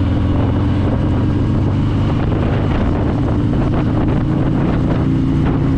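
A motorcycle engine rumbles steadily while riding along a road.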